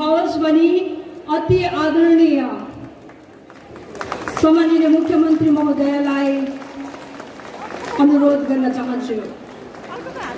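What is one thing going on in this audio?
A man announces loudly over a loudspeaker outdoors.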